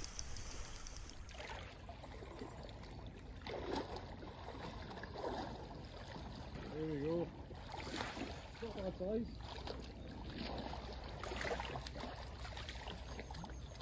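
Small waves lap gently at a pebbly shore.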